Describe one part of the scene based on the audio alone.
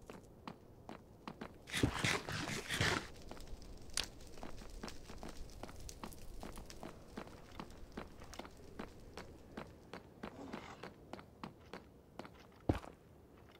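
Footsteps tap quickly and steadily on hard ground.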